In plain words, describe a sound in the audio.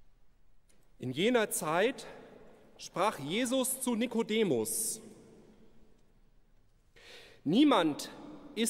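A man sings a chant into a microphone in a large echoing hall.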